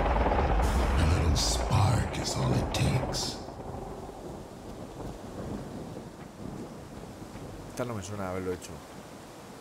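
A man talks into a close microphone in a low, calm voice.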